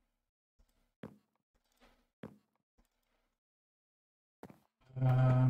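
Blocks thud softly as they are placed, one at a time.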